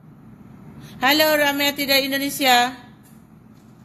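A woman speaks with feeling, close to a phone microphone.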